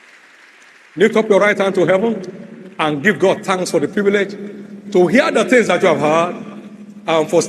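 A man speaks with animation through loudspeakers in a big echoing hall.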